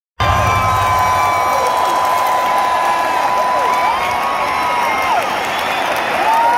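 Fans in a crowd whistle shrilly.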